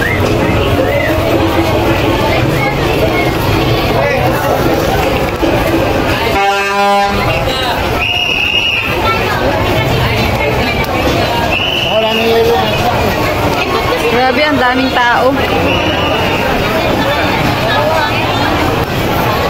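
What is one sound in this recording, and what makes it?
A crowd chatters all around in a busy, echoing hall.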